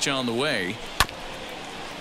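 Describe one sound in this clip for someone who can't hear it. A baseball smacks sharply into a catcher's glove.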